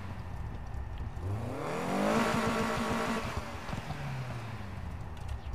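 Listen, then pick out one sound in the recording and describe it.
A car engine revs up loudly and falls back.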